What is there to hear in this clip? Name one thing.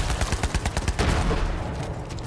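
An explosion bursts with crackling debris.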